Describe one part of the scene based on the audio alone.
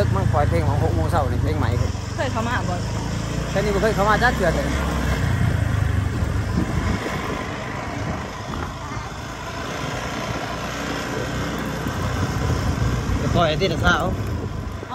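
A motorbike engine hums steadily.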